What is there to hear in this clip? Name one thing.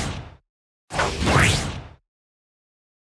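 Electric bolts crackle and zap.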